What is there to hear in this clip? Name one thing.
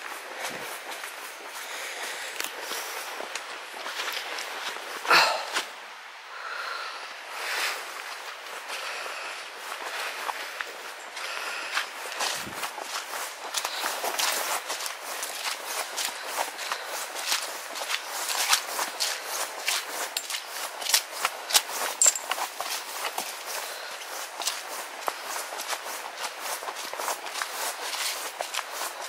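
Footsteps crunch and rustle through dry leaves on a path.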